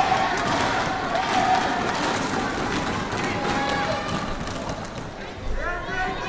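A large crowd cheers and applauds in an echoing arena.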